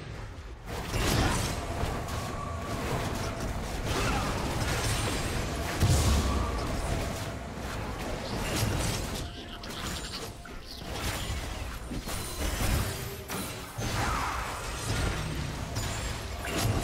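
Game spells and attacks crackle and burst in a video game fight.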